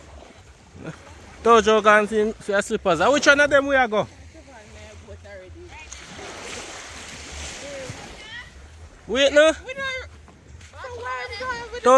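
Small waves lap gently against a sandy shore.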